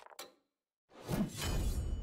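Battle sound effects burst out as a fight begins.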